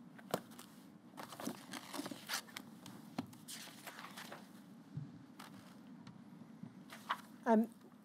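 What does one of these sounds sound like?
Sheets of paper rustle and shuffle close by.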